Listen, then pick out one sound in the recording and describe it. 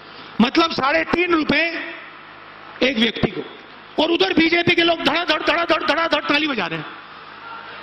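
A man speaks forcefully into a microphone over loudspeakers, with pauses between phrases.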